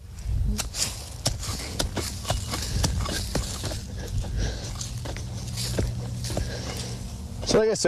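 Dry corn stalks rustle and crackle under a man's knees and hands.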